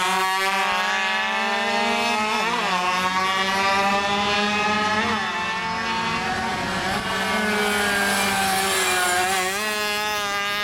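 Motorcycle engines roar and whine as the bikes race past.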